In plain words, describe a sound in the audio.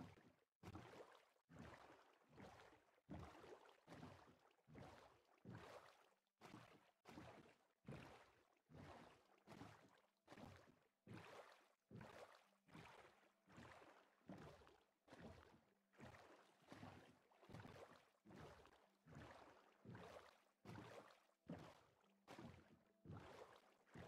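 Oars splash through water in a steady rhythm as a boat is rowed.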